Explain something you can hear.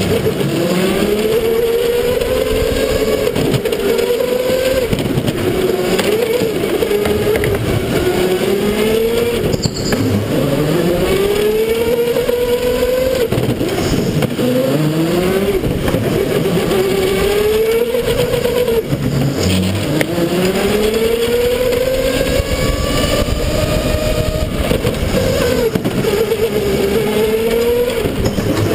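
A go-kart engine drones loudly up close, its pitch rising and falling as the kart speeds up and slows down.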